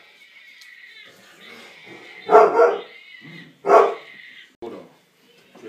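Puppies whimper and squeal.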